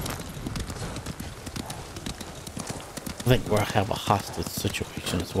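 A horse gallops, hooves thudding rapidly on a snowy path.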